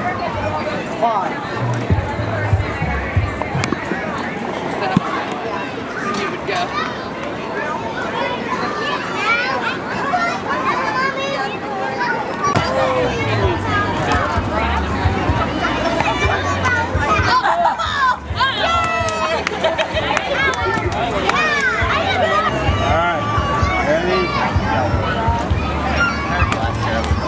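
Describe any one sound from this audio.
A crowd of adults and children chatter outdoors.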